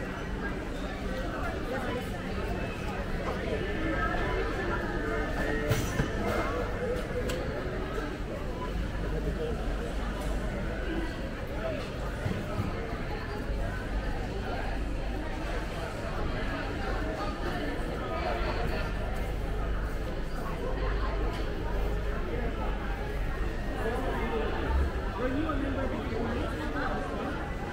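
A crowd of shoppers murmurs and chatters in a large echoing hall.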